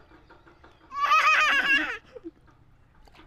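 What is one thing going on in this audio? A toddler squeals loudly close by.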